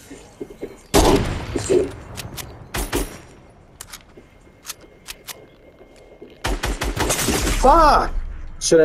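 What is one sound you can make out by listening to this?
Gunshots crack in short, loud bursts.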